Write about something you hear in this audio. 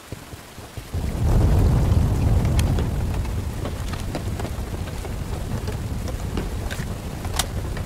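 Flames roar and crackle loudly.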